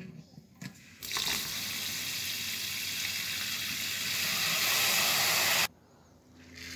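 Water pours from a tap into a bowl of rice.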